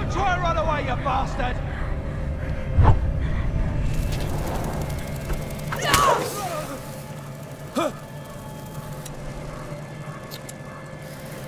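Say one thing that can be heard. Torch flames crackle softly.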